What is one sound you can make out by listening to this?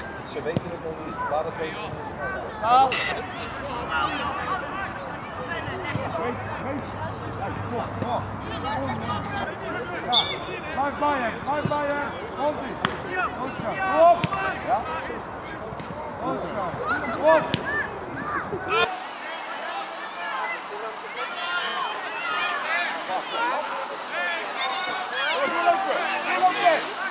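Young boys shout and call out to each other outdoors.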